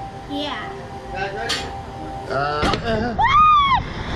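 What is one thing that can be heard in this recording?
A man talks excitedly close by.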